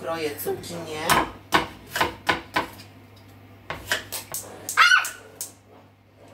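A knife knocks on a cutting board.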